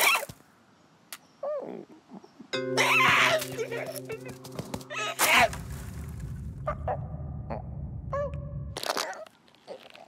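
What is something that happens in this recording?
A cartoon bird squawks and shrieks frantically.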